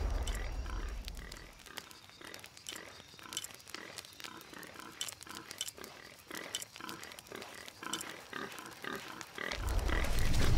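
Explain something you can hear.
A campfire crackles and pops softly.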